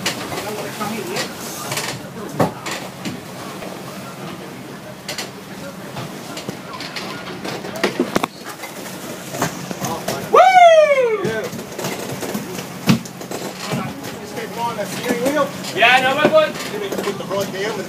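Waves churn and splash behind a moving boat.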